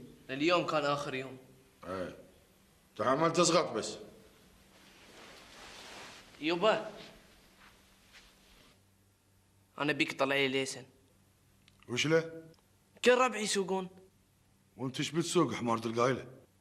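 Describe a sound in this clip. A middle-aged man speaks firmly.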